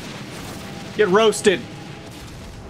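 A young man exclaims loudly close to a microphone.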